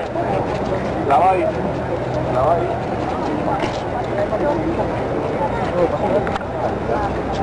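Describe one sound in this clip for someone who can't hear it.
Voices in the crowd shout and chant now and then.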